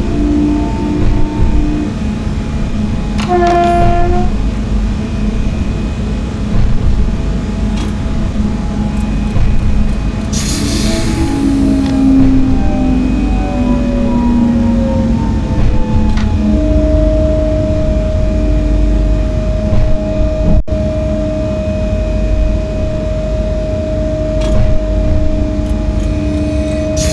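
A train's electric motor hums and whines steadily as the train slows down.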